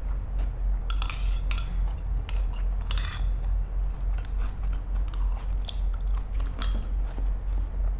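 A young woman slurps and chews food.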